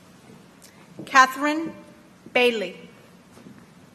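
A woman reads out a name through a loudspeaker in an echoing hall.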